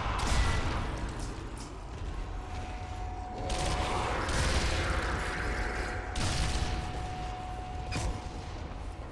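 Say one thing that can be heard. A submachine gun fires in rapid bursts indoors.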